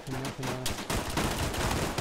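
Bullets thud into the ground, kicking up dirt.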